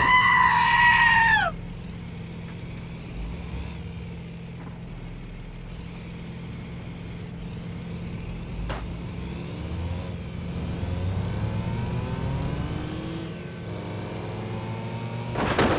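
A small truck engine hums steadily as it drives along.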